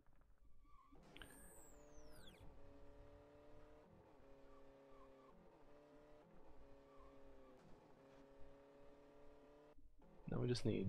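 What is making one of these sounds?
A racing car's engine drones and changes pitch.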